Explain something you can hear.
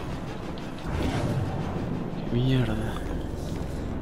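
A man talks with animation into a microphone, close by.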